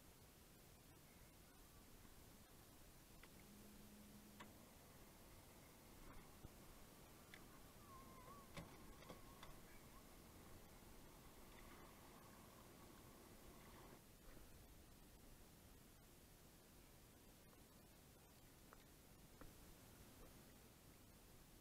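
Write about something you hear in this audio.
Water laps softly against a kayak's hull.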